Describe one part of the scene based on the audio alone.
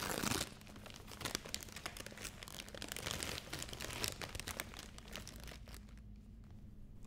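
Wrapping paper rustles and crinkles as a gift is unwrapped.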